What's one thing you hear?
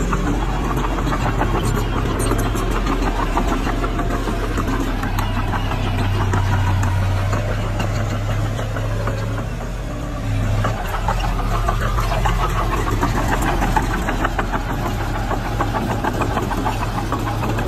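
Bulldozer tracks clank and squeak as they move.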